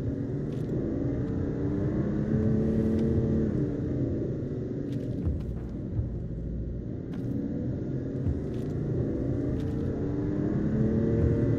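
A car engine hums steadily and rises and falls in pitch.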